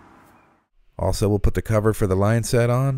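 A plastic cover clicks into place.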